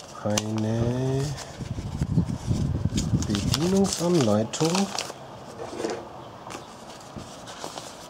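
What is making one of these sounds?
Paper crinkles and rustles as a leaflet is unfolded.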